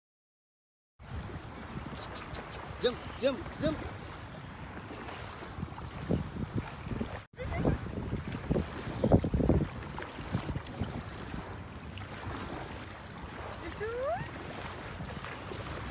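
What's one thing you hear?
Sea water sloshes around a man standing waist-deep.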